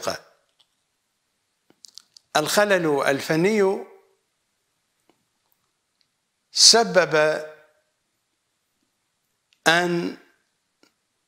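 A middle-aged man speaks calmly and clearly into a microphone, in short phrases with pauses.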